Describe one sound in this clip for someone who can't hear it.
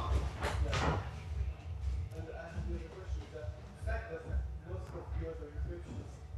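A man talks quietly further off.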